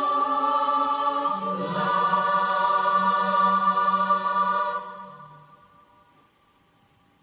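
A choir sings a held final chord that rings out and fades in a large echoing hall.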